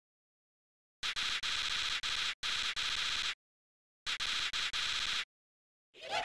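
Rapid electronic blips chirp as game dialogue text types out.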